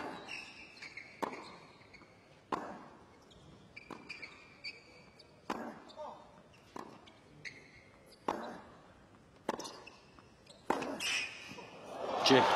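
Shoes squeak sharply on a hard court.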